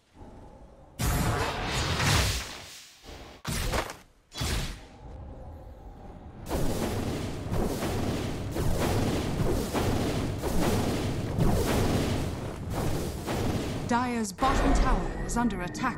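Fantasy battle sound effects clash, whoosh and crackle in quick bursts.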